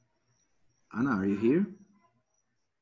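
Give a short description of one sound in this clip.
A young man speaks briefly through an online call.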